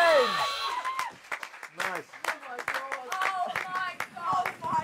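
Several hands clap in applause.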